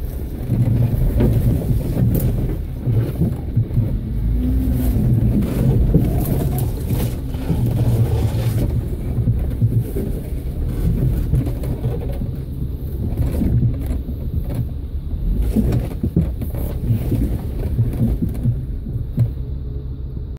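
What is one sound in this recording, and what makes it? An off-road vehicle's engine rumbles at low speed as it crawls over rocky ground.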